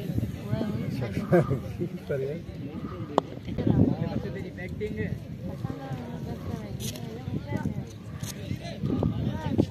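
Several young men talk and call out outdoors nearby.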